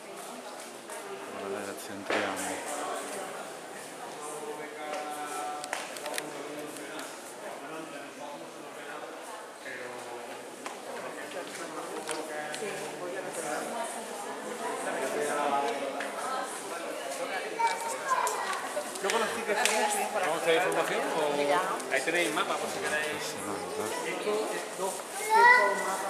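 Many people murmur and talk in a large echoing hall.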